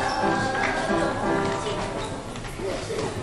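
Children sing together in a large echoing hall.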